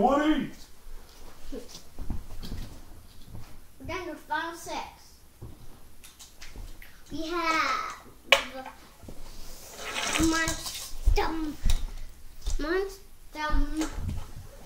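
A young boy talks excitedly nearby.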